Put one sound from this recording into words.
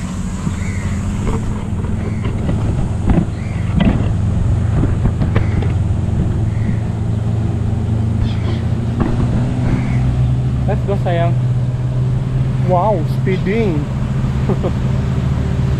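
A motorboat engine drones steadily across the water.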